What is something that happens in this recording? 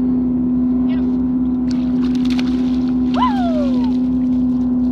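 A fish splashes in water close by.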